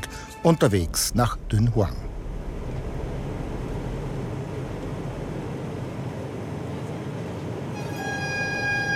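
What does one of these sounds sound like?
A jet engine drones steadily inside an airliner cabin.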